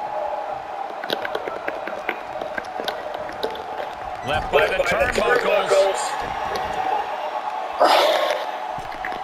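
A large crowd cheers and murmurs steadily in a big arena.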